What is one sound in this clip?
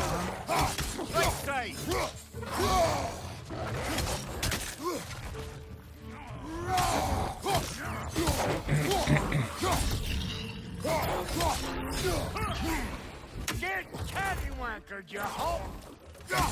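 Weapons clang and strike in a fight.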